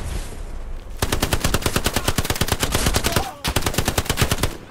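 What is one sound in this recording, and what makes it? A submachine gun fires in rapid bursts.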